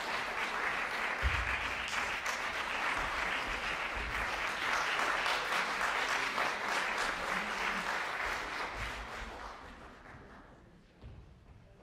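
An audience applauds in a large hall, and the applause slowly fades away.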